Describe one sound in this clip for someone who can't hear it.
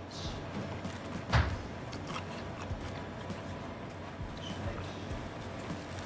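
Pizza slices tear and scrape on a plate.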